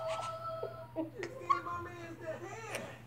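A young boy laughs loudly and giggles close by.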